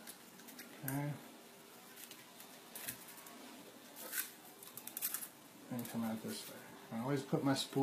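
Thin wire rustles and clicks as hands handle it.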